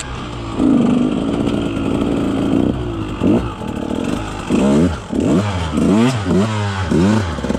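Dry twigs and leaves crunch under motorbike tyres.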